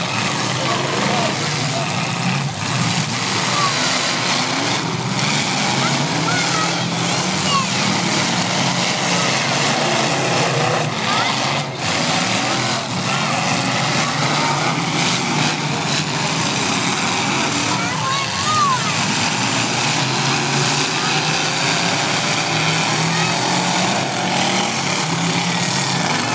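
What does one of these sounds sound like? Engines roar loudly as cars race.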